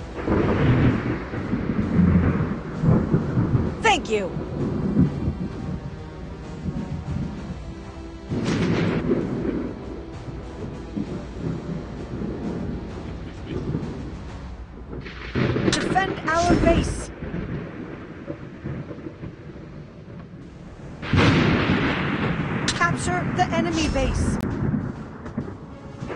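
Heavy naval guns fire with deep, booming blasts.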